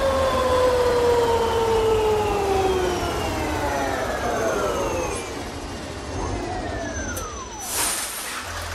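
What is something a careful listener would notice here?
A bus engine winds down as the bus slows to a stop.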